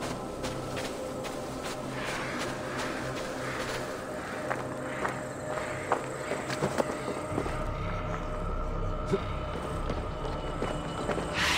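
Footsteps crunch slowly over dry ground.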